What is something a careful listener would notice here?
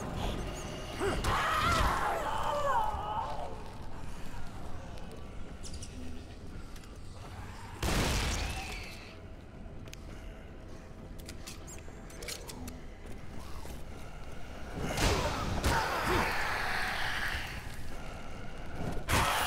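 Flames whoosh and roar.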